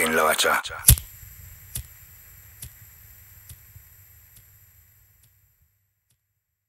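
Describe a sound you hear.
Flames crackle and roar softly.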